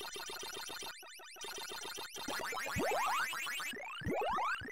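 Electronic arcade game bleeps and chirps play rapidly.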